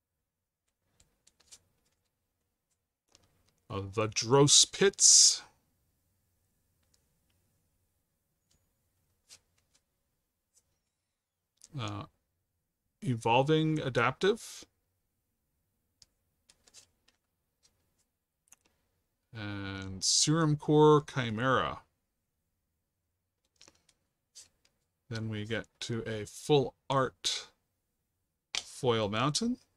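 Playing cards slide and tap softly as they are handled.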